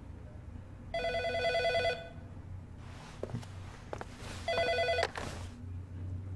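A phone rings with an electronic trill.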